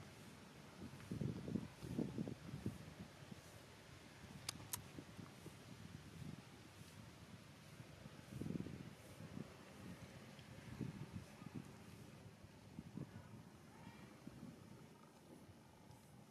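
Dry leaves rustle and crunch as a small monkey shifts and moves about on them.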